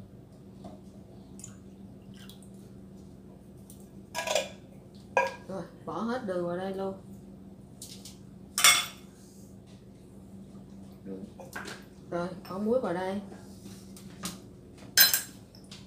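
A spatula stirs and scrapes in a metal pot.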